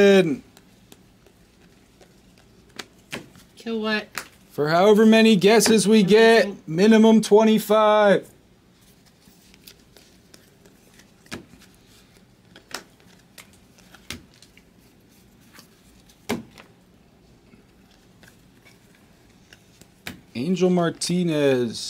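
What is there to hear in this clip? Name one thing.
Trading cards shuffle and flick against each other.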